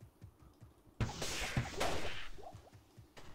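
A magic spell bursts with a crackling whoosh.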